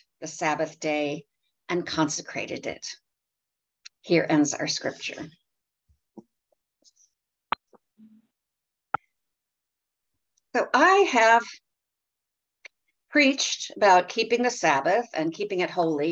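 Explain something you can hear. A middle-aged woman speaks warmly and calmly, heard through an online call, with short pauses.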